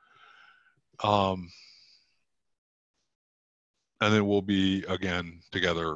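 A middle-aged man talks calmly into a headset microphone, heard through an online call.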